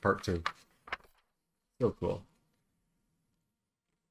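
Paper pages rustle as they turn.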